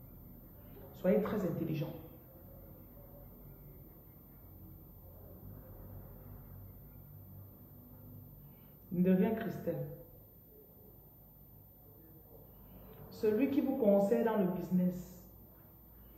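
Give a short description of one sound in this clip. A woman speaks close to the microphone in short, calm bursts with long pauses between them.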